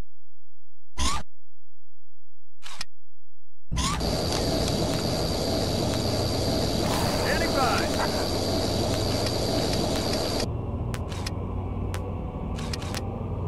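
Short electronic menu beeps sound.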